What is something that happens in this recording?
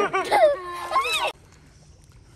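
A young girl shouts and laughs close by.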